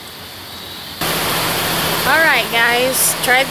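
A woman speaks animatedly close by.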